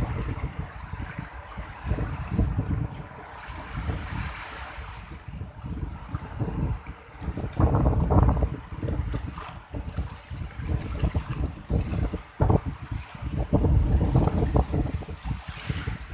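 Small waves wash onto the shore.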